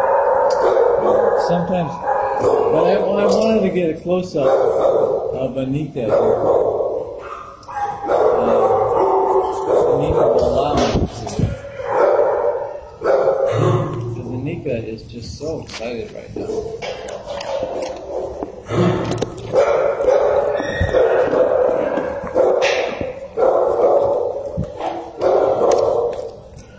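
Dogs bark loudly and constantly close by, echoing off hard walls.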